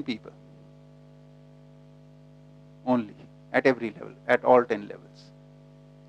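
A middle-aged man speaks through a microphone in short bursts.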